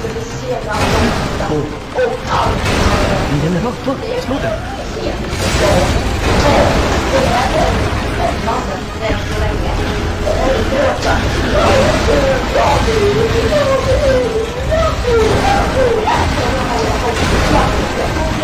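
Explosions boom as targets are blown apart.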